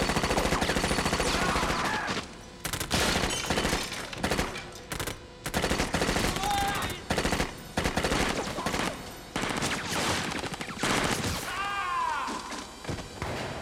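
A man shouts.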